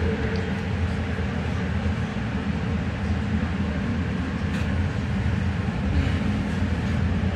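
A train rumbles steadily along an elevated track.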